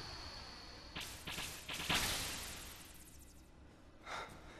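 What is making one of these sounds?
A magical burst whooshes and crackles loudly, then fades.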